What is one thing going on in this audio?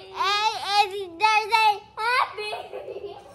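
A young girl sings loudly and playfully close by.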